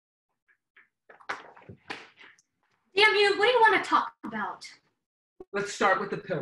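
A young woman speaks with animation close by.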